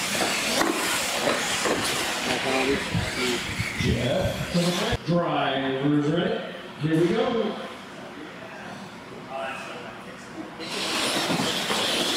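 Small electric motors whine as toy cars race across a hard floor.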